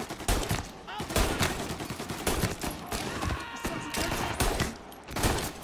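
A pistol fires loud single shots in quick succession.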